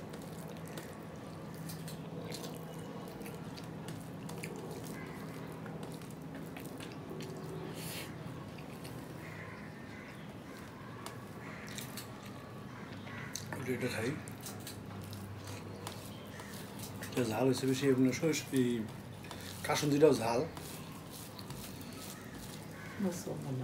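A man mixes rice with his fingers with soft squishing sounds.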